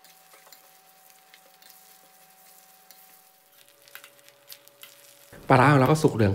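A metal spatula scrapes and stirs food in a metal wok.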